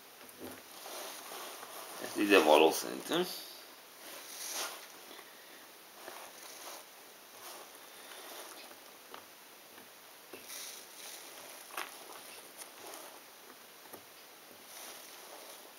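Jigsaw puzzle pieces click and rustle softly on a table as a hand moves them.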